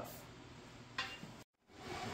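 A steel bar clanks against a metal frame.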